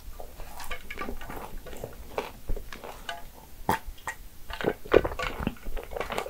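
A young woman sips a drink and swallows close to a microphone.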